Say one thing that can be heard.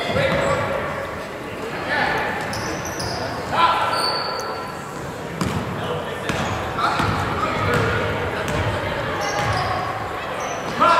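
Spectators talk and call out in the echoing gym.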